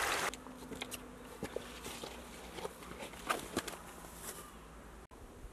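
Branches and leaves rustle and snap as someone pushes through bushes.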